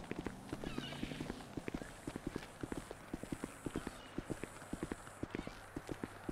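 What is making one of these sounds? Footsteps clatter on a corrugated metal roof.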